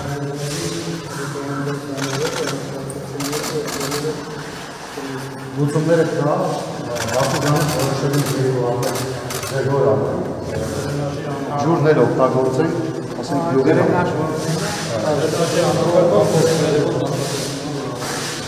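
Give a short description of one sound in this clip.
A man speaks calmly and steadily, close by.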